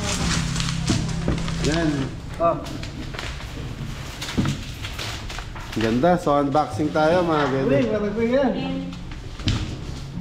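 Plastic wrap crinkles and rustles close by.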